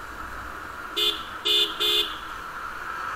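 A horn honks three short times close by.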